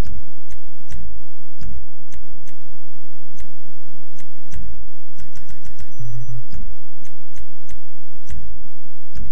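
Short electronic clicks tick as a game menu is scrolled through.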